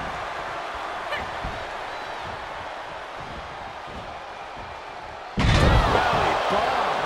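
A crowd cheers steadily in a large arena.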